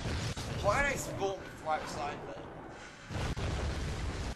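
A fiery explosion booms and rumbles deeply.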